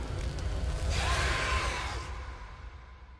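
A creature lets out a loud, harsh shriek.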